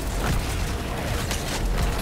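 A fiery magical blast whooshes.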